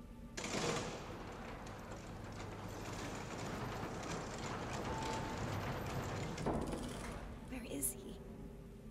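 A lift rumbles and rattles as it descends.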